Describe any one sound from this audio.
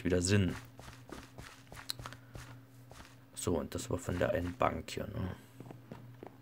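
Footsteps tap steadily on gravel and wooden boards.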